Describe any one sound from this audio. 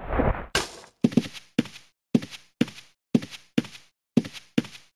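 Footsteps tap at an even pace.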